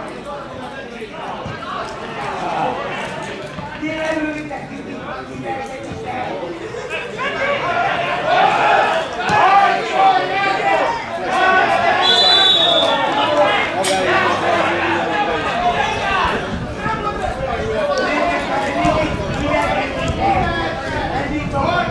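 Young men shout to each other across an open outdoor field.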